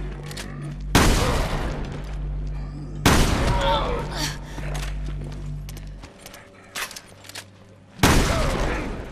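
Gunshots fire loudly and echo.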